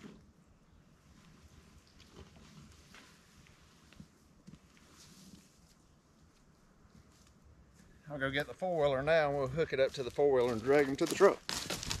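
Boots crunch on dry pine needles.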